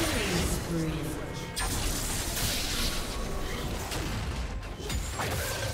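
Video game spell effects whoosh and crackle in a busy fight.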